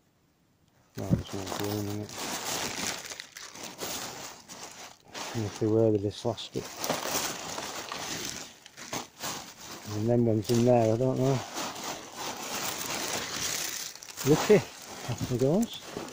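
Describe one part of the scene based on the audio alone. Plastic bags rustle and crinkle as they are rummaged through.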